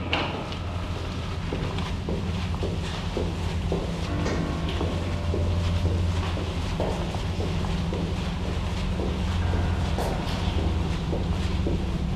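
Footsteps walk slowly on a stone floor.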